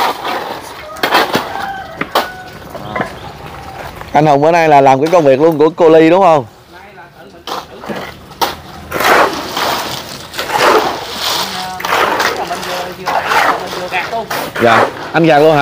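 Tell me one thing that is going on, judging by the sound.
Shovels scrape and crunch through wet gravel.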